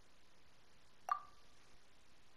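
A short, bright game menu chime sounds once.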